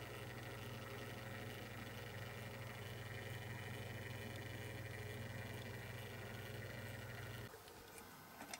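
A turntable motor hums steadily.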